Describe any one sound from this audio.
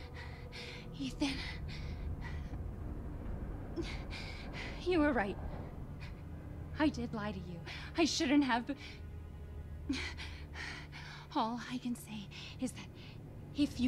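A young woman speaks softly and tearfully, heard through a recording.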